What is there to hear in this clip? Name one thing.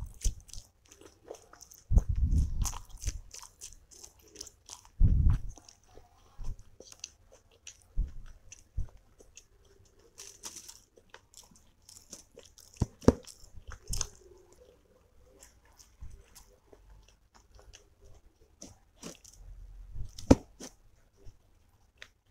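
A young woman chews food wetly and close to the microphone.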